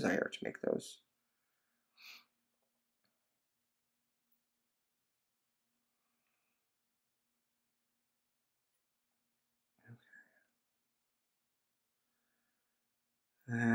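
Thin wire rustles and clicks softly as it is bent by hand.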